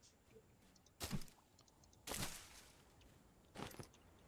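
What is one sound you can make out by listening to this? A stone axe swishes and thrashes through leafy bushes.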